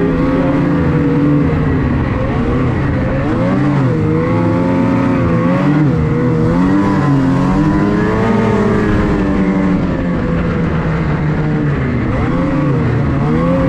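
A snowmobile engine roars up close, rising and falling in pitch as it speeds along.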